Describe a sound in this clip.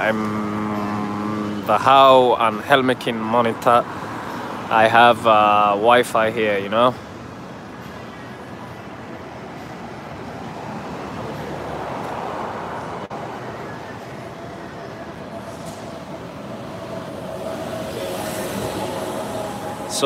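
Traffic rumbles steadily on a city street outdoors.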